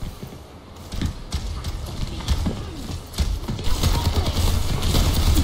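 A gun fires rapid energy shots.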